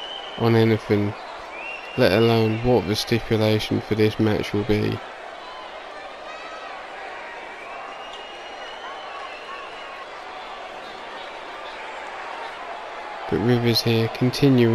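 A large crowd cheers and murmurs in the background.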